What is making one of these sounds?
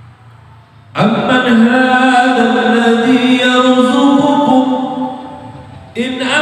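A man chants in a long, drawn-out melody through a microphone.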